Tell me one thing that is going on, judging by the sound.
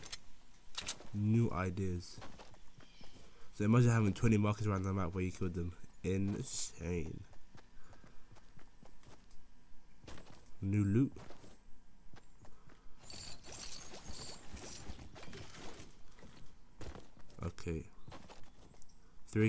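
Footsteps run quickly over grass.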